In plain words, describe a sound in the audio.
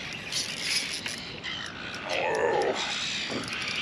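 A fishing reel clicks and whirs as it is cranked.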